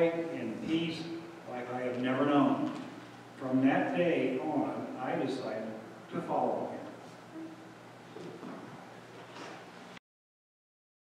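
A choir of men and women sings together in a large echoing hall.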